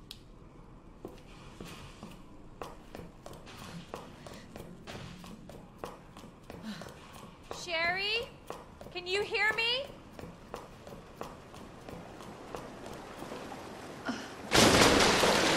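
Footsteps echo slowly on a hard floor.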